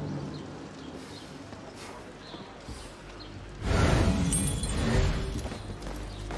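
Hands scrape and thud on stone while climbing a wall.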